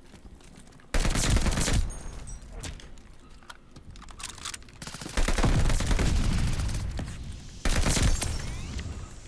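A machine gun fires in loud, rapid bursts.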